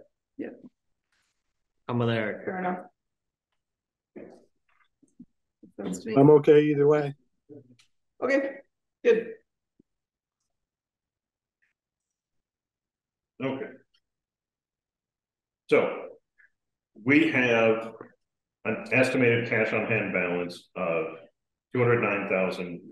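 Men talk calmly in a meeting, heard through a microphone.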